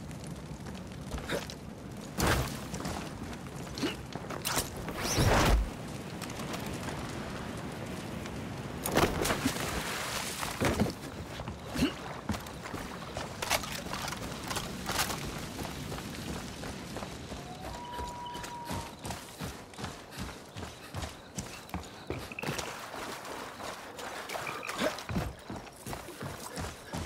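Footsteps crunch over grass and gravel.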